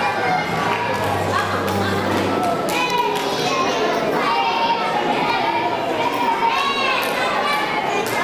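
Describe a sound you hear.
A woman speaks calmly into a microphone, heard over loudspeakers in an echoing hall.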